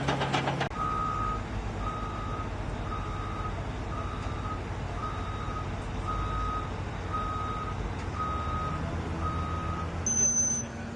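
A vehicle's reversing alarm beeps steadily.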